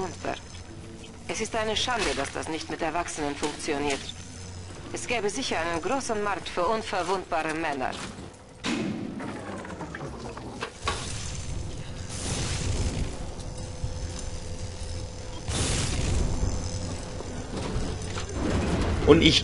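Electricity crackles and buzzes in short bursts.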